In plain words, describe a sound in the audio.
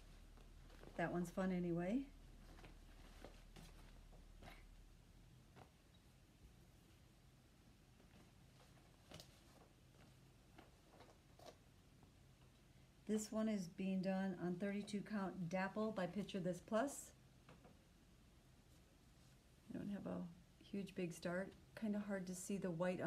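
A middle-aged woman speaks calmly and close by, in short bursts with pauses.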